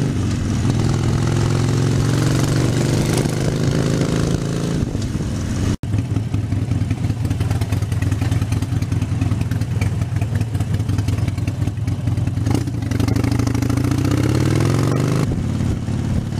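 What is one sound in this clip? A motorcycle engine revs up, rising in pitch as it speeds up.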